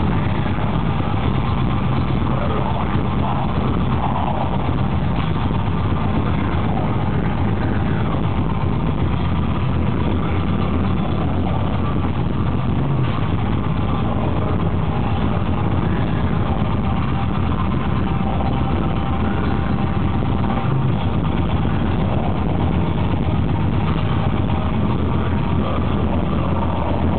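A loud metal band plays heavy distorted guitars and pounding drums, heard from within the crowd.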